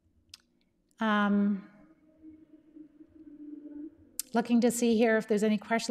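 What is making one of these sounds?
A middle-aged woman speaks calmly, close to a microphone.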